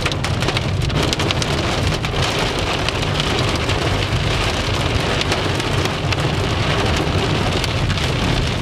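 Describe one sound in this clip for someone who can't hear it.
Strong wind roars and gusts outdoors.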